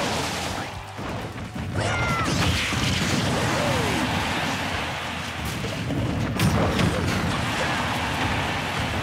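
Cartoonish fighters land punches and kicks with sharp, thudding hits.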